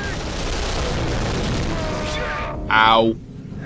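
An explosion roars and rumbles nearby.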